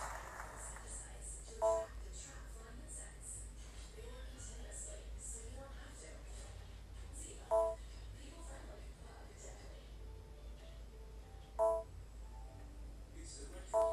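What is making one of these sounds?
A stylus taps lightly on a touchscreen.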